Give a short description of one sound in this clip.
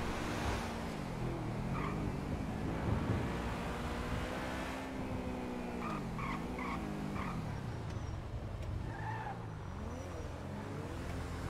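A sports car engine roars and revs up and down at high speed.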